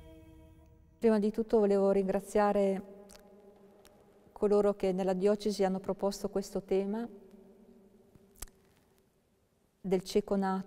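An elderly woman speaks calmly nearby, with pauses.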